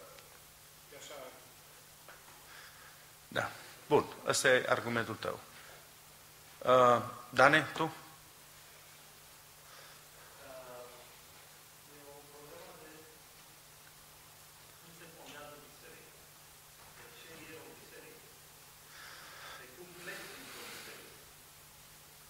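A middle-aged man preaches with emphasis through a microphone.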